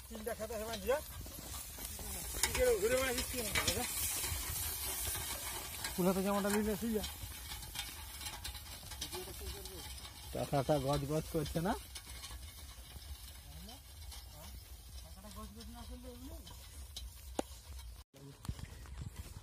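Wooden cart wheels creak as a bullock cart rolls along a dirt track.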